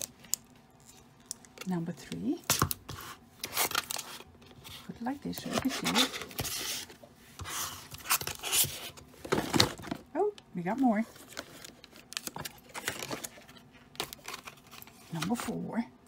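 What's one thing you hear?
Small plastic pieces tap and click.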